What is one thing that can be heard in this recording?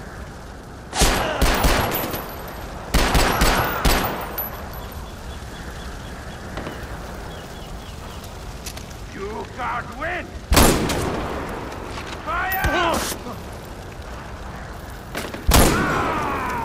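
Gunshots bang out loudly, one after another.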